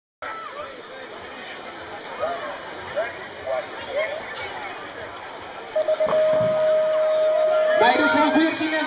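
A crowd chatters outdoors at a distance.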